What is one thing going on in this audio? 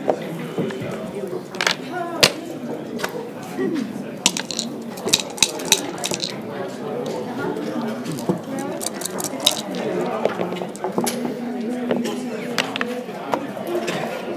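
Plastic game pieces click and clack against a wooden board.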